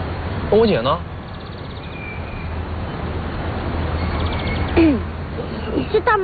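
A young man speaks with surprise, close by.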